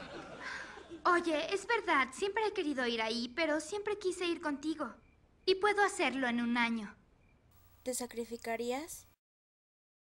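A young woman speaks with emotion, close by.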